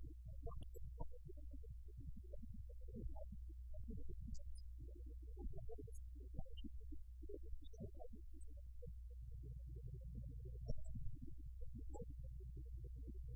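A middle-aged man speaks calmly and steadily into a microphone.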